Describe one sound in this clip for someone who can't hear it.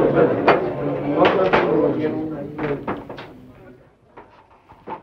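A crowd of men chatters and shouts in a room.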